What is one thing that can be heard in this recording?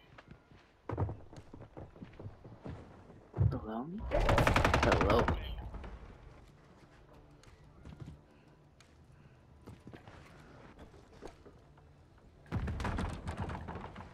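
Quick footsteps thud on floors and wooden stairs.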